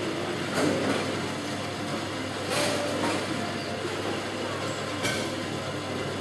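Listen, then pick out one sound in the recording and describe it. Bowling pins clatter now and then over a steady din in a large echoing hall.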